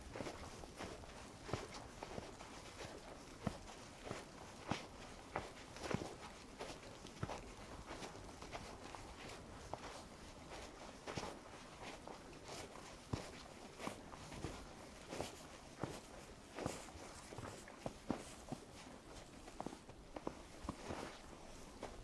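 Footsteps crunch steadily through fresh snow, close by.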